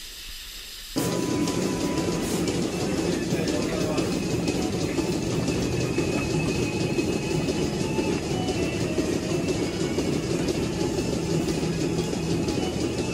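Milking machines hum and pulse steadily in an echoing hall.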